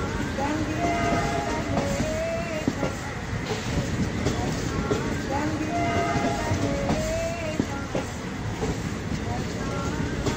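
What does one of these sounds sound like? A train rolls slowly past with a low rumble.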